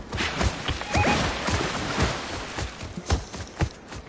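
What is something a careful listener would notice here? Water splashes as a rider's mount runs through a shallow stream.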